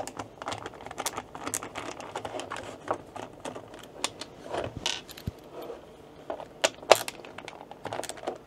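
A ratcheting screwdriver clicks as it turns a screw.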